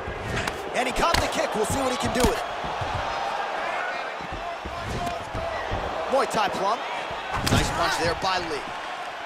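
Kicks and punches thud against a fighter's body.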